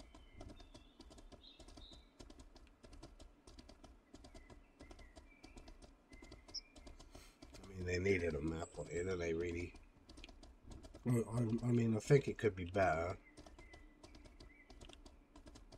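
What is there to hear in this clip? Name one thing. A horse's hooves clop steadily on soft ground.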